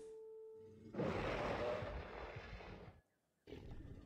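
A huge creature lets out a loud, deep roar.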